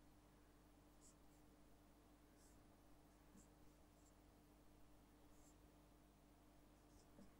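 A marker squeaks and taps softly on a whiteboard.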